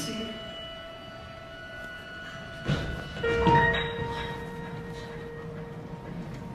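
A piano plays sustained notes in a large hall.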